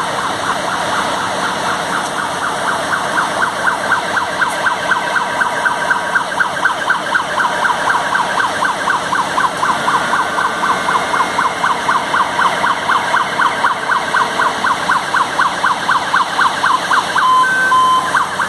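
A siren yelps rapidly and steadily nearby.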